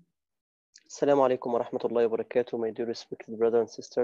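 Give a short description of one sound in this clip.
A man speaks calmly and close through an online call.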